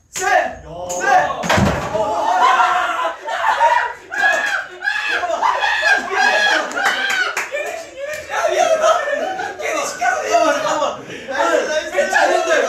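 Young men shout and laugh loudly together close by.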